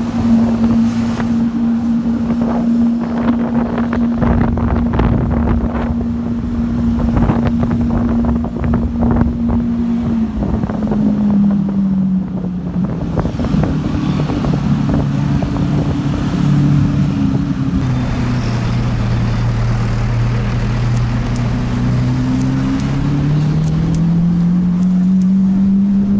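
A car engine hums steadily and then revs up and down.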